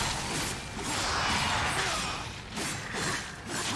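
A huge beast roars.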